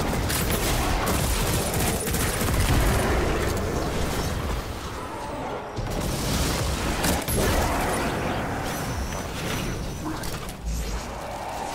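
Gunfire and explosions boom and crackle in a video game.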